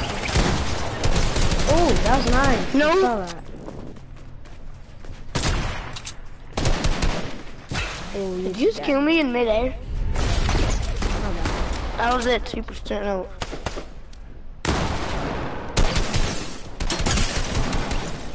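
Gunshots crack in quick bursts from a video game.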